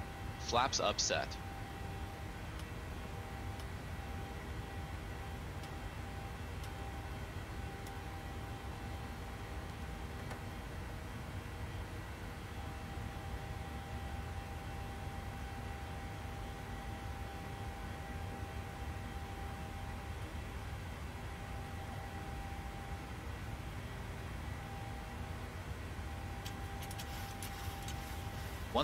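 Jet engines drone steadily with a low rumble of air past the cockpit.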